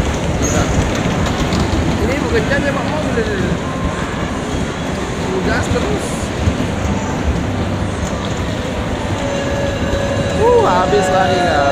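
Bumper cars rumble and whir across a hard floor.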